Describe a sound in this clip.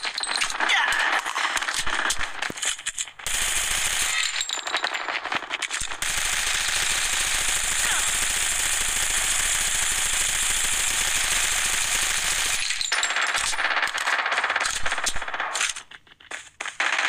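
A rifle fires bursts of rapid shots.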